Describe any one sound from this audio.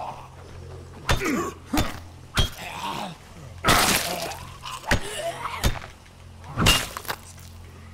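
Heavy blows thud and smack repeatedly.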